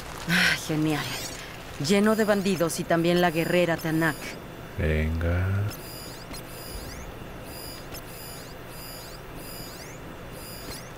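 A shimmering magical tone pulses and twinkles repeatedly.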